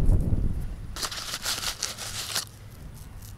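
A paper packet crinkles and rustles in someone's hands.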